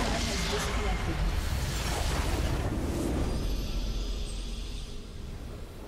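Magic blasts and explosions crash loudly, then fade away.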